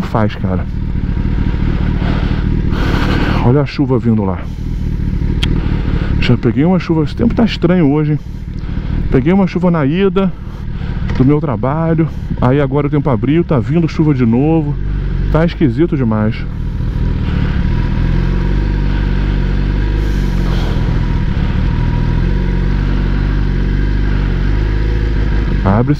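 A motorcycle engine idles with a steady low rumble.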